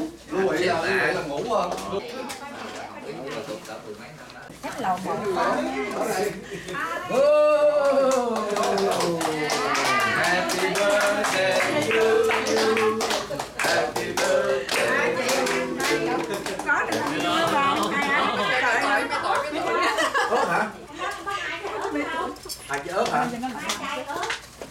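A crowd of adults chatters throughout.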